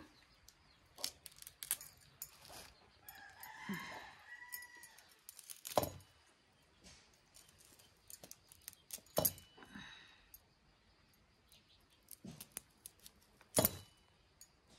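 Small metal clicks and taps come as hands work a blade.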